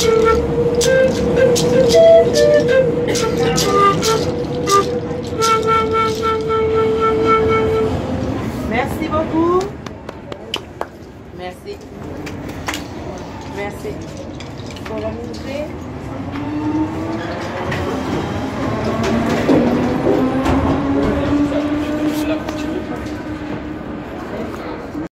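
A subway train rumbles and rattles along.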